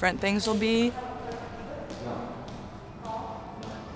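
Sneakers step across a hard floor.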